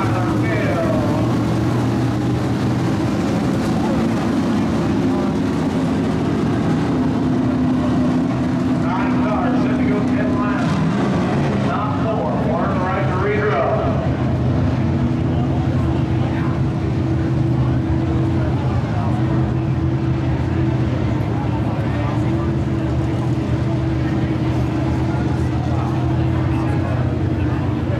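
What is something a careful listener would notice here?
Race car engines roar steadily.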